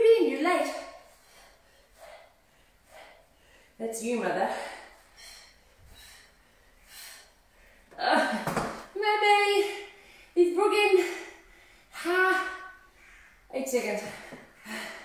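A woman speaks with animation, giving workout instructions.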